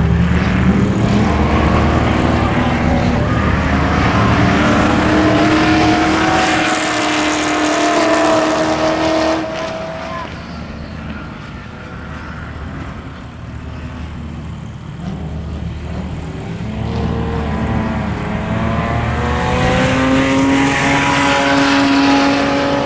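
Racing car engines roar and rev outdoors, fading between passes.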